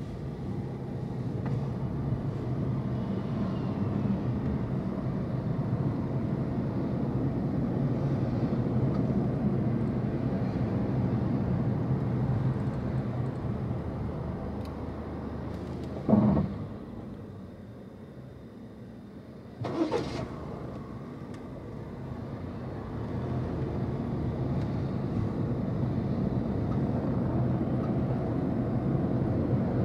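A car rumbles steadily along the road, heard from inside, and quietens while it stands still.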